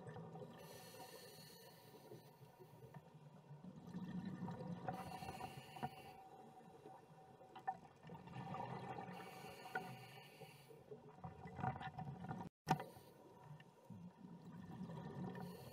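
Scuba air bubbles gurgle and rush underwater in repeated bursts.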